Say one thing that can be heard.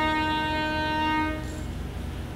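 A violin plays a sustained note.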